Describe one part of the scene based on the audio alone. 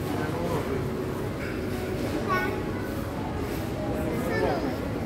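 People chatter in the background of a busy, echoing indoor space.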